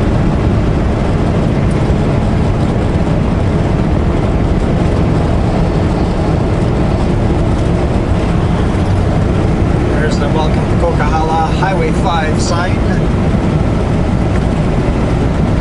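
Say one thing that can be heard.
A vehicle's engine and tyres rumble steadily on a paved road.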